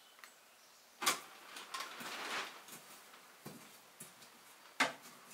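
Metal clanks and knocks sharply at a stove.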